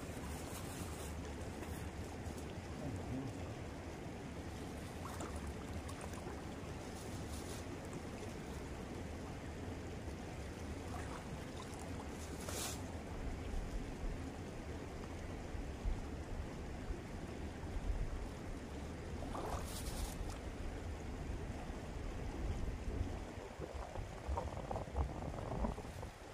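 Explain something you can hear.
Water splashes as a man wades and moves his hands in a stream.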